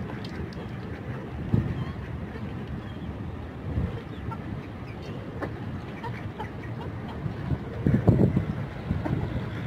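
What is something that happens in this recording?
Chickens peck at food, with quick taps and clicks on a metal dish.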